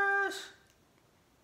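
A young woman makes a short, high exclamation close by.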